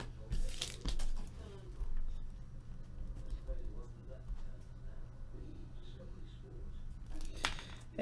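A foil wrapper crinkles and rustles.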